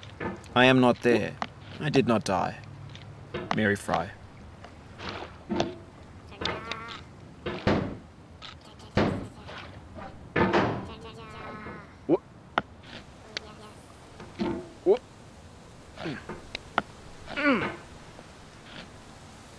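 A hammer knocks and scrapes against rock.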